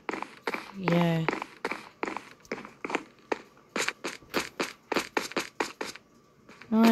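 Footsteps tap quickly across a wooden floor.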